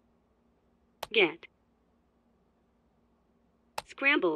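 A keypad button clicks with a short beep.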